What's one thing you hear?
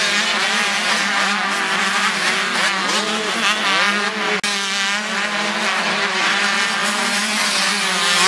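Motorcycle engines roar and rev loudly.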